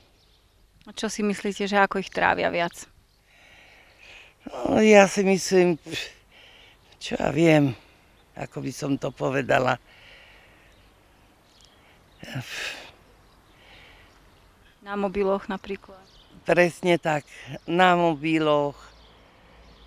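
An elderly woman speaks calmly into a microphone, close by, in short phrases with pauses.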